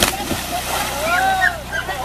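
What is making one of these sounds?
Water splashes as a girl swims.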